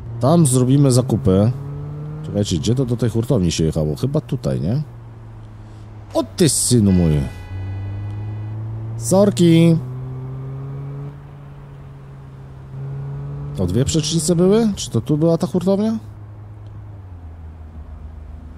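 Car engines hum steadily in passing city traffic.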